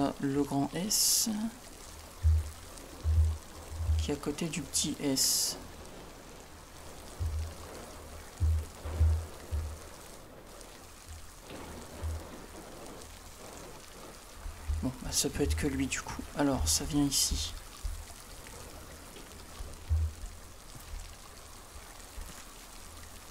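Water splashes in short bursts.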